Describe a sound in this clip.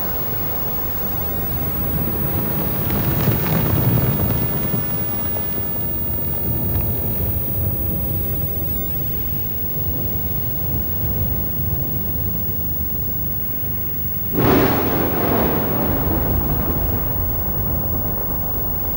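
A volcano roars with a deep, steady rumble.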